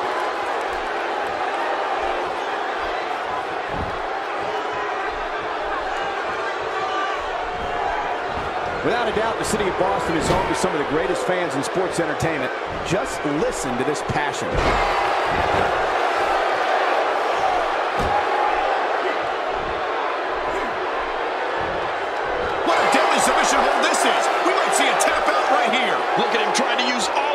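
A large crowd cheers and murmurs in a big arena.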